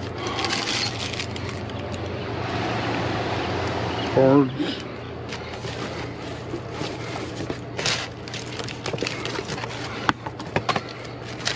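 Plastic wrappers crinkle and rustle as gloved hands dig through rubbish.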